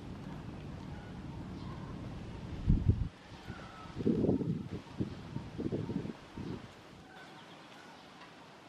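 A baby monkey squeaks softly.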